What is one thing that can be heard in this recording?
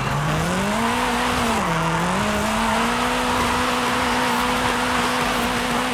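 Tyres screech on asphalt through a bend.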